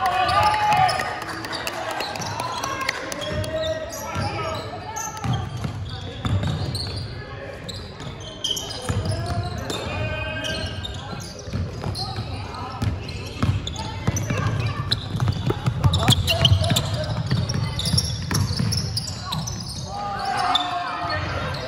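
A basketball bounces on a hardwood court in an echoing sports hall.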